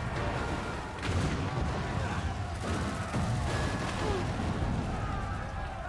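Explosions boom and rumble with a deep roar.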